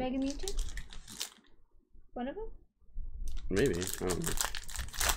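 A foil card pack crinkles and rustles close by.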